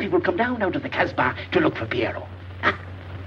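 An elderly man talks excitedly, close by.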